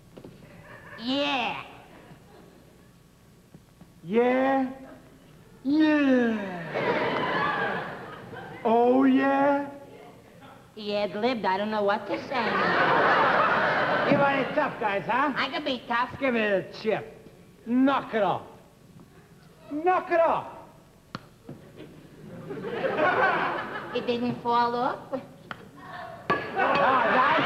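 A young man speaks in a high, whining voice.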